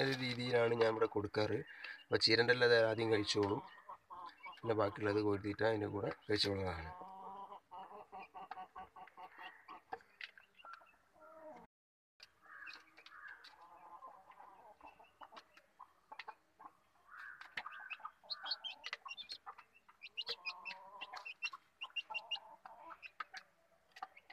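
Chickens peck at grain with quick tapping sounds.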